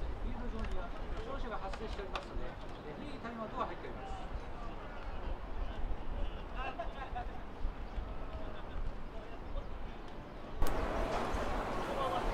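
Men talk casually nearby outdoors.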